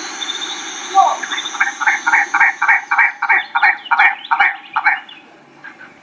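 A bird gives a quick series of harsh, rattling calls.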